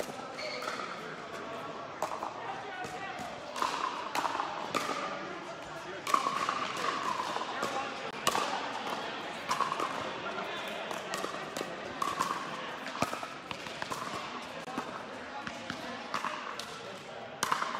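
Paddles pop sharply against a plastic ball in a large echoing hall.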